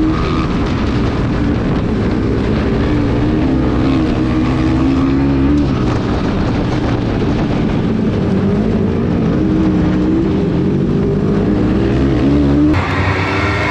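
A racing buggy engine roars and revs up and down close by.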